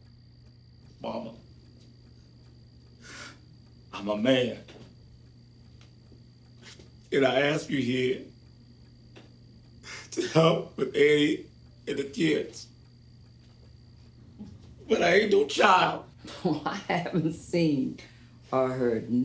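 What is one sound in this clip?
A man speaks emotionally, close by.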